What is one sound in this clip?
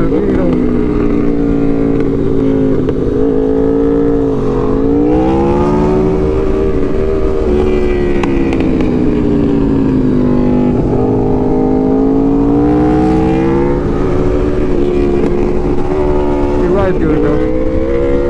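A motorcycle engine hums loudly up close, its pitch rising and falling with the throttle.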